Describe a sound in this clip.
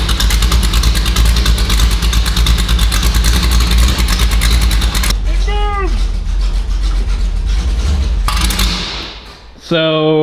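A car engine idles loudly with a deep rumble.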